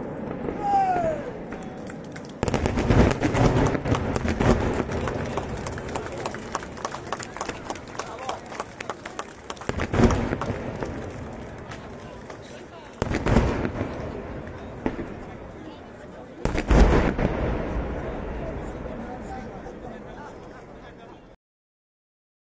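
Daytime fireworks crackle and bang across a valley, with booms echoing back.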